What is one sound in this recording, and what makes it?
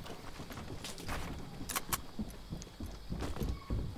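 Wooden building pieces clack into place.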